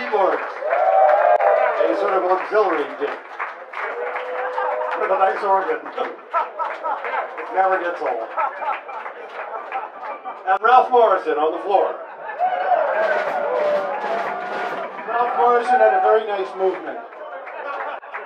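A band plays loud rock music.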